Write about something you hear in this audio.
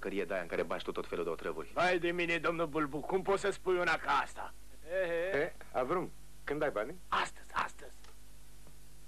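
A man speaks with animation, close by.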